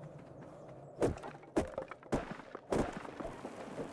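A hatchet chops into wood with sharp, repeated thuds.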